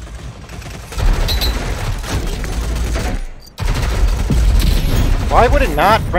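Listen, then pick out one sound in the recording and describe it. A submachine gun fires rapid bursts of shots.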